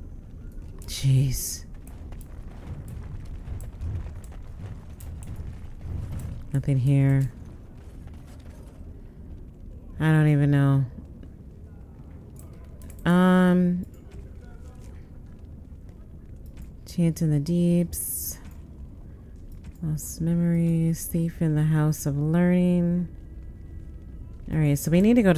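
A young woman speaks in short bursts into a close microphone.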